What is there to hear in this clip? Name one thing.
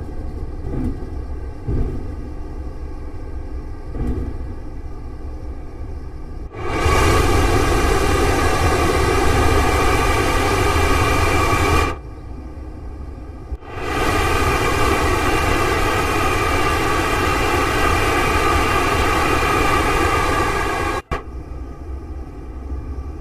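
A train hums and rumbles steadily along the tracks, heard from inside the cab.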